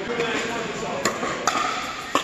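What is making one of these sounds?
Paddles strike a ball with sharp pops in a large echoing hall.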